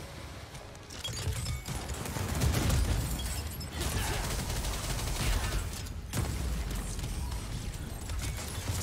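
A deep rumbling blast swells and fades.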